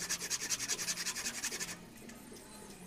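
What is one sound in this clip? A hand saw rasps back and forth through wood.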